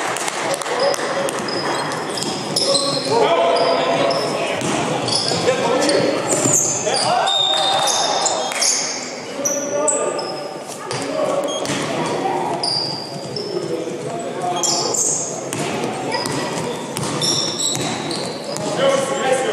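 A basketball bounces on the floor as a player dribbles.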